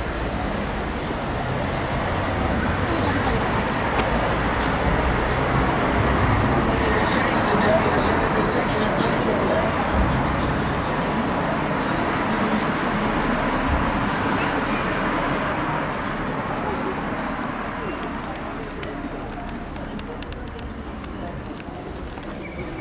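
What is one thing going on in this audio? Cars drive past on a street outdoors.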